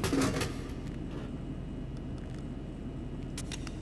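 A can clunks down inside a vending machine.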